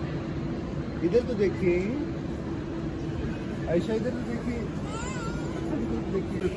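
A young child squeals and babbles nearby.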